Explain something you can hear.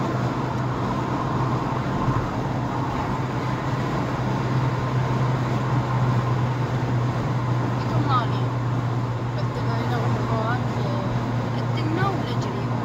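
Tyres roll on a highway with steady road noise.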